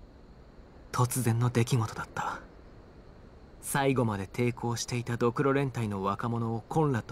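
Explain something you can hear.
A young man speaks calmly and softly, close by.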